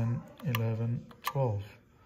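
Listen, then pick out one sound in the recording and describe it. A finger presses a wall switch with a soft click.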